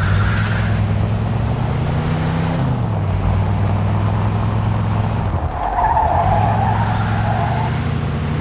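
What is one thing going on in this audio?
A car engine hums steadily and shifts pitch as the car speeds up and slows.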